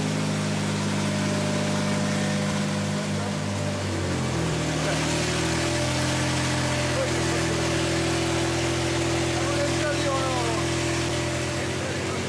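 An engine-driven generator hums and rattles steadily close by.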